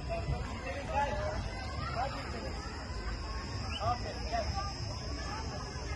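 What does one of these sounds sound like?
Young people talk and call out at a distance outdoors.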